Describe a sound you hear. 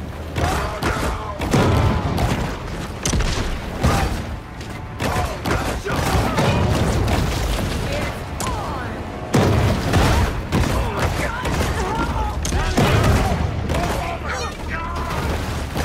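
Heavy impacts thud and crash.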